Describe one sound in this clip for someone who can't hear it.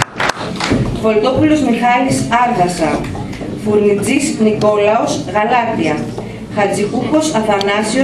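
A woman speaks through a microphone and loudspeaker.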